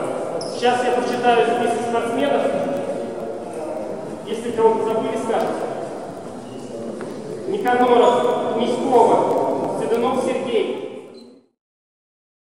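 A man speaks to a group in a large echoing hall.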